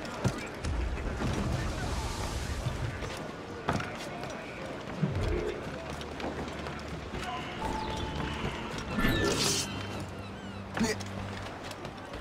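Footsteps thud quickly across wooden planks.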